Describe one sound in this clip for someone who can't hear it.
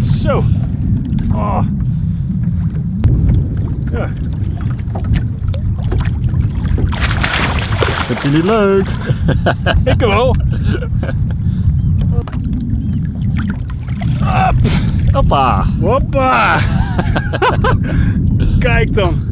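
Wind rumbles outdoors on open water.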